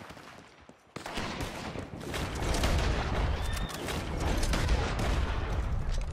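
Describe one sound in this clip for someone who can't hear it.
Gunshots crack nearby in quick bursts.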